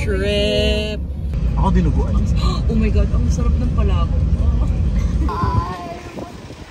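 A car rumbles steadily as it drives along a road.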